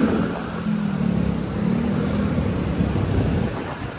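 Motorcycles ride past close by.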